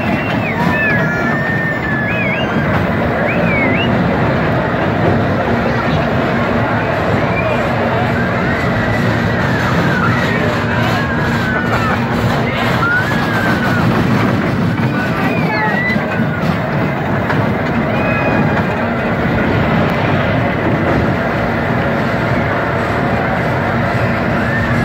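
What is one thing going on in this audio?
A small roller coaster rattles and rumbles along its track.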